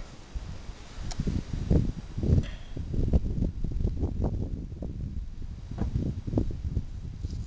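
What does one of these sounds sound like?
Fingers scrape and brush through dry gravelly soil.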